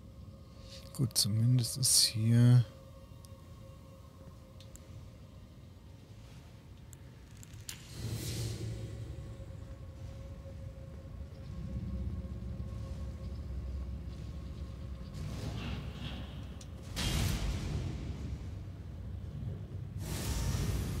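A sword swings and strikes.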